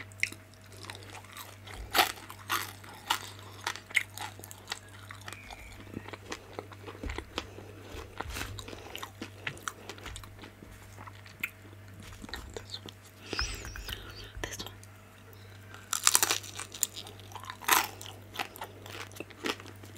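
A woman chews crispy food with loud crunching close to a microphone.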